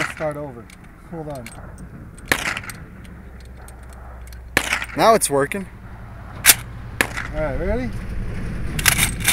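Metal parts of a rifle click and clack as it is loaded and handled.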